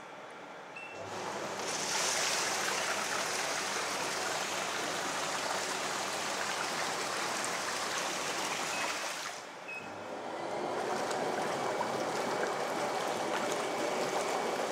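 Water bubbles and churns steadily from massage jets.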